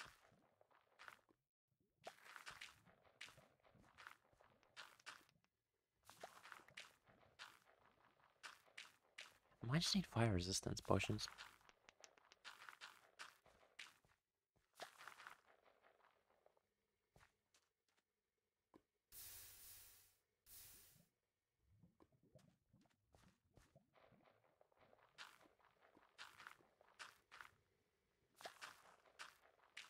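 Plants rustle softly as they drop one after another into a wooden composter.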